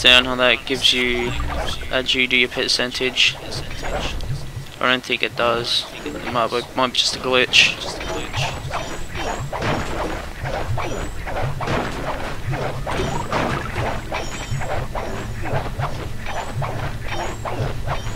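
A cane swishes through the air.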